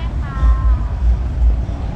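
A car engine idles as a car creeps slowly past.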